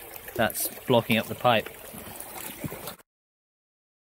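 Boots splash through shallow water.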